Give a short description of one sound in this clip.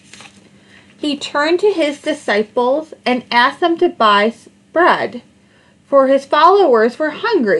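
A woman reads aloud with animation, close to a microphone.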